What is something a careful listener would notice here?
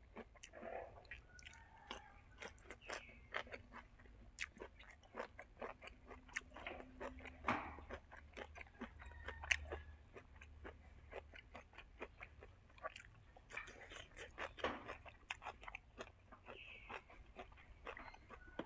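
A man chews and smacks his lips loudly, close by.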